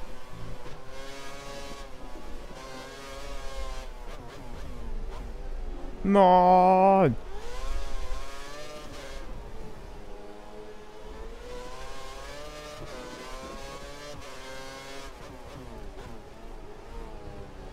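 A racing car engine whines, rising and falling in pitch as it shifts gears.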